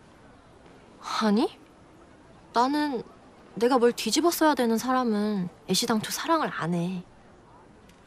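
A young woman speaks nearby with animation.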